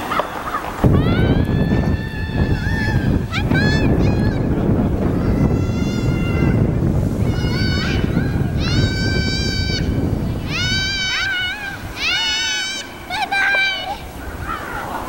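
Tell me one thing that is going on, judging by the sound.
A plastic sled scrapes and hisses as it slides over snow.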